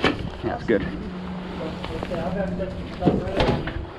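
Boots scrape and step down onto a metal step.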